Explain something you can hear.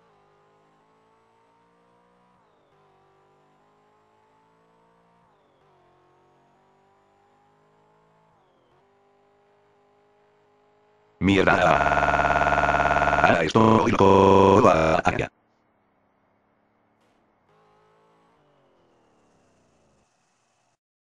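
A car engine revs and climbs in pitch as it shifts through gears.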